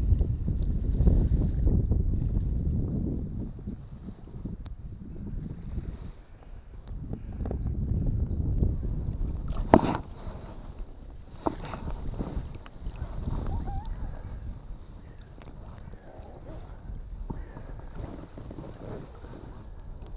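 Water laps and splashes gently against a small boat.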